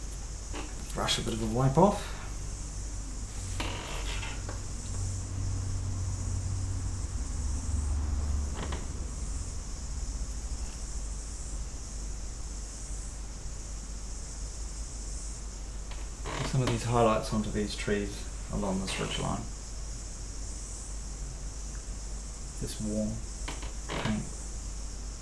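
A man speaks calmly in short phrases.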